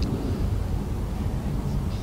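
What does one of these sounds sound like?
Fires roar with a deep, steady rumble.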